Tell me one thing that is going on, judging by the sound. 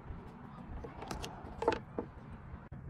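Scissors snip with a sharp click.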